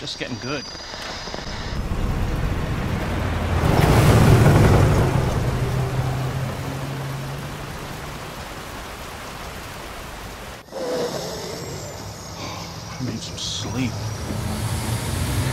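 An older man mutters in a tired, low voice.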